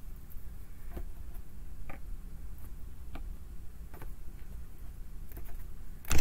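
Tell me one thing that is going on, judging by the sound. Cards tap softly as they are laid down on a table.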